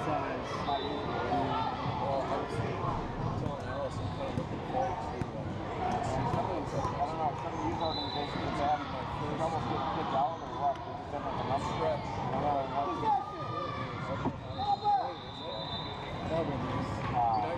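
A crowd of children and adults chatters throughout a large echoing gym.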